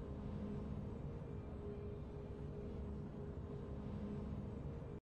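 Triumphant video game music plays steadily.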